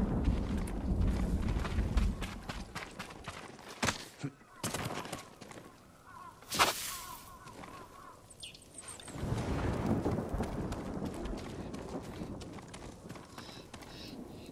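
Footsteps run quickly over stone and dirt.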